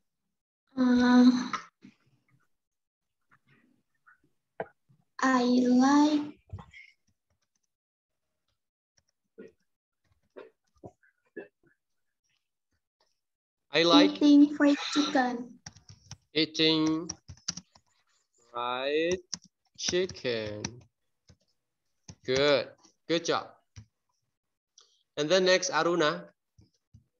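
A child speaks haltingly over an online call, in short bursts with pauses.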